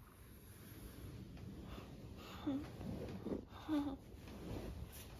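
A towel rubs against hair and skin with soft scuffing.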